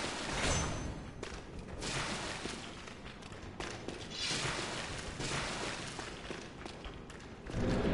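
Footsteps tread slowly over stone and rubble.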